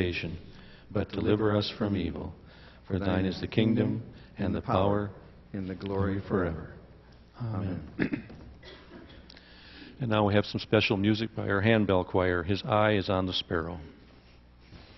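A man reads aloud steadily through a microphone in a large room.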